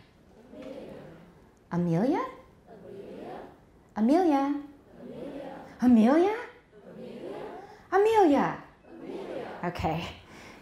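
A middle-aged woman reads out slowly through a microphone, with loud, drawn-out words.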